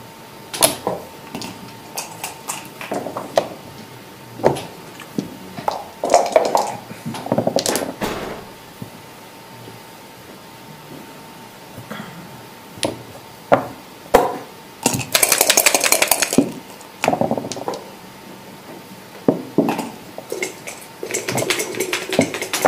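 Game checkers click and clack as they are moved on a board.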